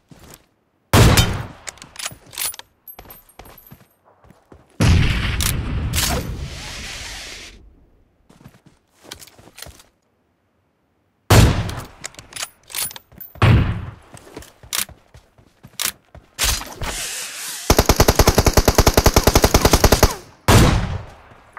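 Gunshots crack sharply, some in quick bursts.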